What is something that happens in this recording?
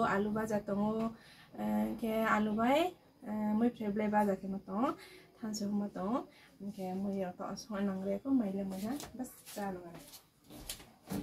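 A woman talks with animation, close by.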